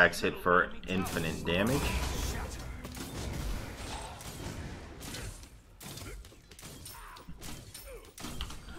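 Magic blasts and whooshes sound in a video game battle.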